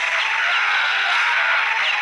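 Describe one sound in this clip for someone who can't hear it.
Explosions boom in an arcade game.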